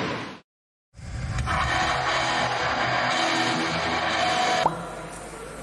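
A band plays loudly in a large echoing hall.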